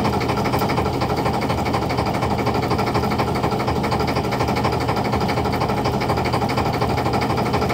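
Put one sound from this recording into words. A wet fishing net swishes as it is pulled in.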